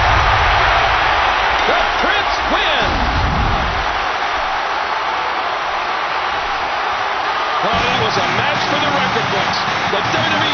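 A large crowd cheers and roars throughout in a big echoing arena.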